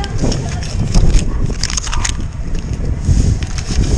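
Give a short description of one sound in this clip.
Paper money rustles in hands.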